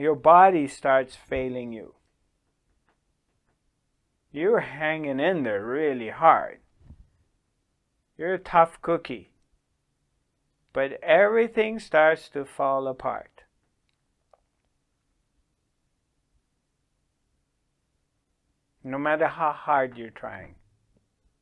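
A middle-aged man speaks calmly and slowly into a close microphone, with long pauses.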